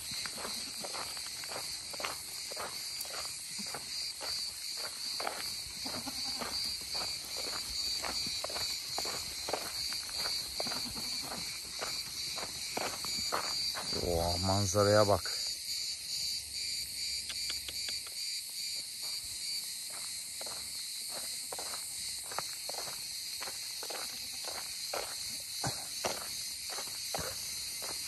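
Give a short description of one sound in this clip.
Footsteps crunch steadily on a gravel road.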